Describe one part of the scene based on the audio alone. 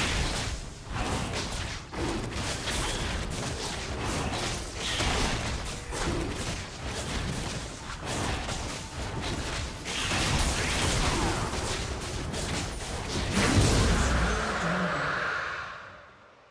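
Magical blasts and hits crackle and clash in a fast fight.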